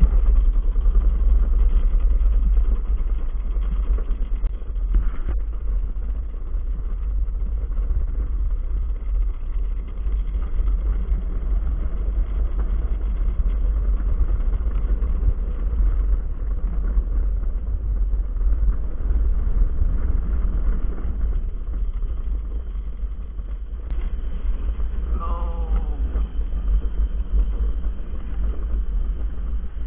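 Plastic wheels rumble and rattle steadily over a rough track.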